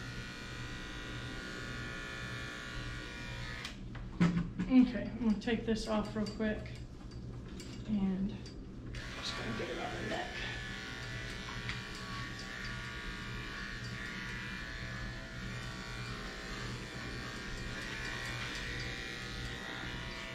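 Electric clippers buzz steadily close by.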